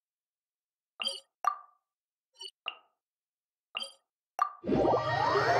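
Soft menu clicks chime several times.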